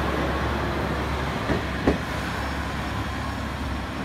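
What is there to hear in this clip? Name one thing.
A train passes close by with a rumbling roar.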